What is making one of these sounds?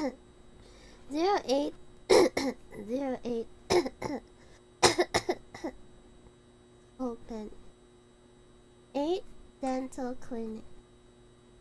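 A young woman speaks animatedly and playfully into a close microphone.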